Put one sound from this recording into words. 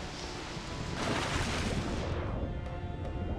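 A body plunges into water with a splash.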